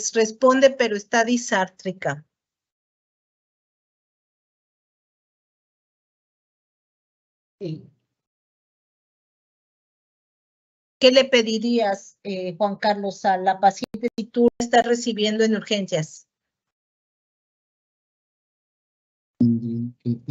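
A woman speaks calmly through an online call, in pauses.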